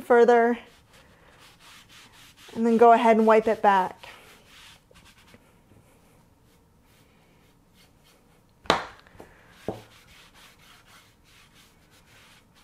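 A cloth rubs softly over wood.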